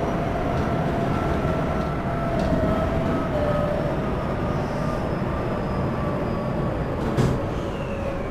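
Train wheels knock over rail joints.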